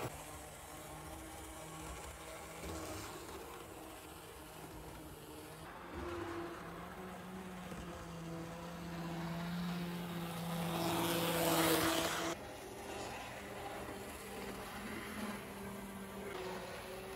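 A small model train hums and rattles steadily along its track.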